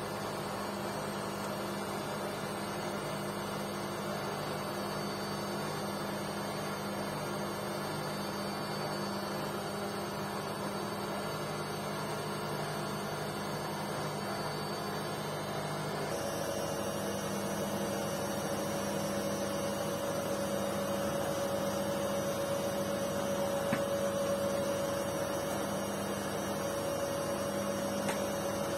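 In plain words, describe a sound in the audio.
A washing machine hums and whirs steadily, shifting to a higher whine partway through.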